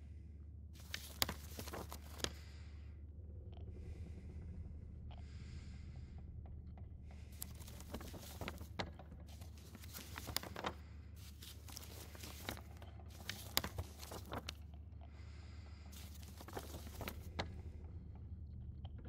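Paper rustles and crinkles as a map is handled and turned.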